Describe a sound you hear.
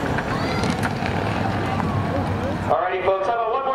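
A race car engine roars past on a track.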